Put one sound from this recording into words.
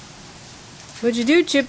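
Dogs bark excitedly close by.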